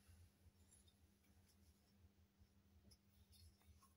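A plastic lid knocks and taps lightly as hands handle it.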